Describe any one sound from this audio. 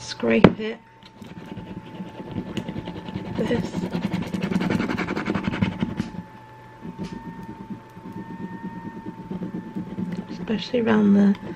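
A hand rubs and scratches against a glass jar.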